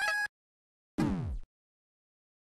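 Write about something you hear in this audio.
An electronic tone drops sharply in pitch.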